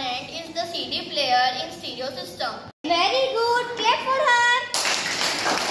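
A girl speaks out loud.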